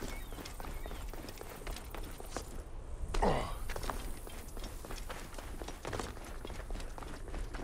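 Footsteps scuff and crunch on dry rock.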